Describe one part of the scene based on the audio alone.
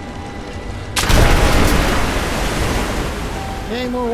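A loud explosion bursts and roars, then rumbles away.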